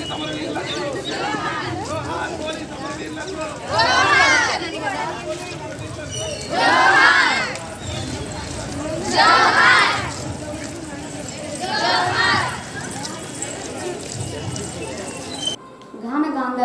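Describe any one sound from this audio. A crowd murmurs and talks outdoors.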